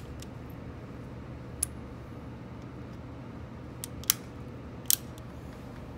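Metal parts of a handgun click and rattle as it is loaded.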